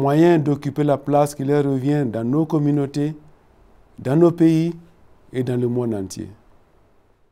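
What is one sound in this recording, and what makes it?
A middle-aged man speaks calmly and clearly into a close microphone.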